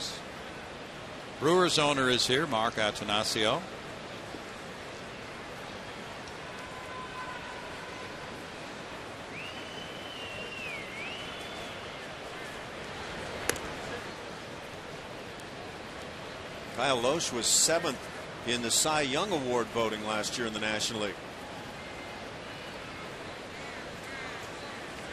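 A crowd murmurs steadily in a large open stadium.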